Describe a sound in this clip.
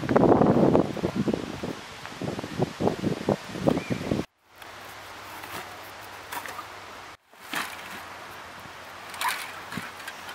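Cans and bottles clink in cardboard boxes.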